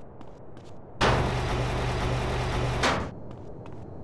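A garage door rattles as it rolls open.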